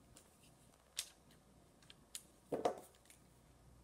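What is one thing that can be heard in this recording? Paper rustles briefly as it is handled.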